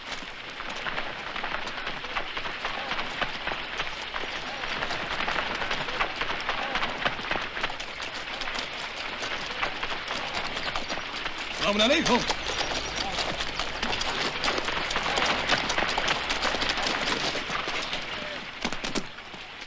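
Horse hooves clop on rocky ground.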